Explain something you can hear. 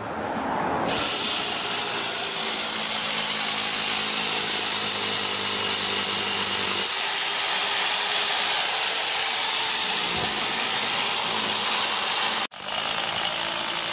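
A hammer drill whines loudly and grinds steadily.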